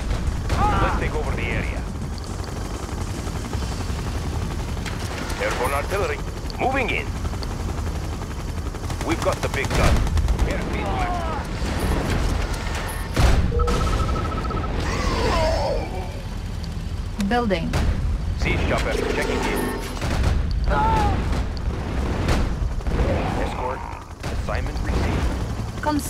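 Gunfire and explosions go off now and then.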